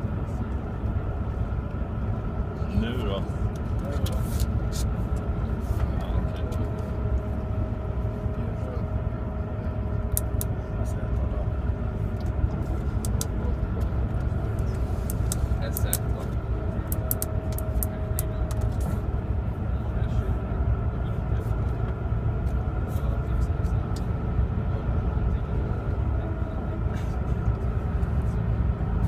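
A vehicle engine rumbles steadily from inside.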